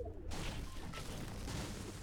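A pickaxe strikes a tree with chopping thuds.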